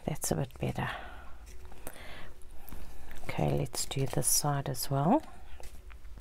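Paper rustles and taps against a table.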